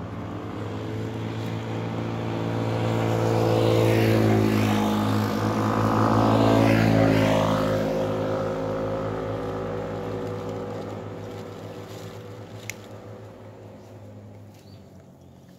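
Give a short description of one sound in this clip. A motor vehicle drives past nearby, its engine droning loudly and then fading away.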